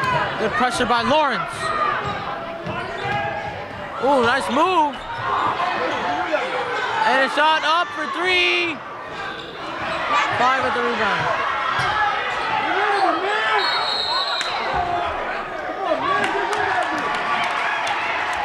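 Sneakers squeak on a hardwood court in a large echoing gym.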